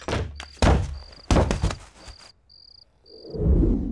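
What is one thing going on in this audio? A man drops heavily onto a bed.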